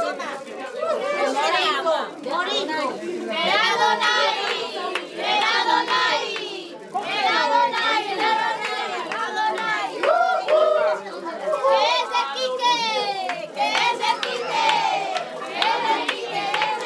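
A crowd of women and children sings together loudly nearby.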